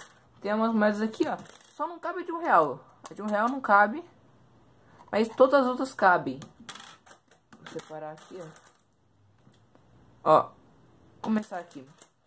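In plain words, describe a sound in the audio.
Plastic parts click and rattle as a puzzle toy is handled.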